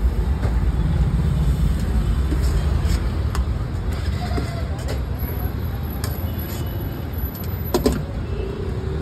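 Cooked food is scraped from a pan onto a metal plate.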